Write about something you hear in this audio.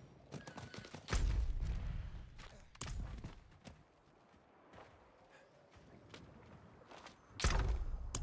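Game characters fight with thuds and impacts.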